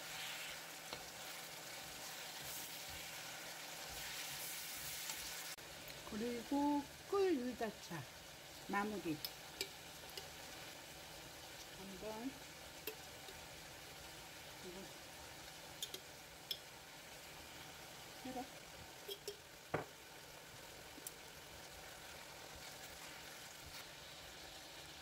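Burdock strips sizzle in a hot frying pan.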